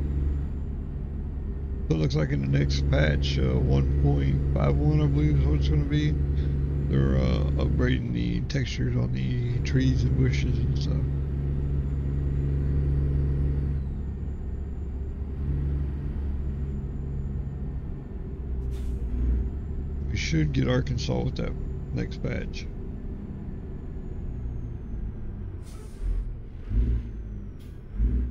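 A truck engine drones steadily as the truck drives along a highway.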